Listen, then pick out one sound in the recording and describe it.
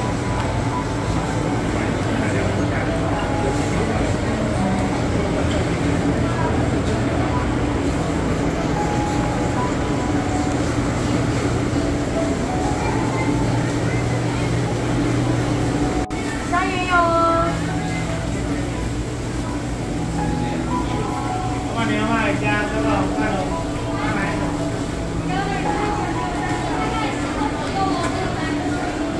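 A crowd murmurs and chatters in a busy hall.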